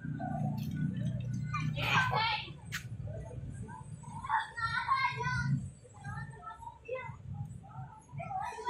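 Young children shout and chatter nearby.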